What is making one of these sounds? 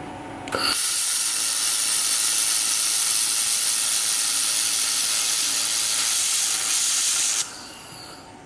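A laser welder hisses and crackles steadily.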